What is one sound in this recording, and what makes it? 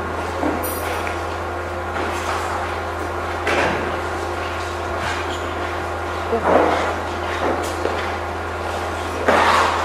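A woman speaks calmly into a microphone, heard through a loudspeaker in a room.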